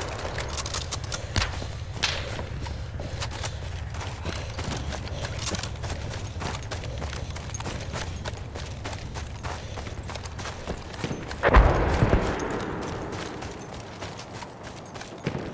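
Gunfire crackles and pops all around.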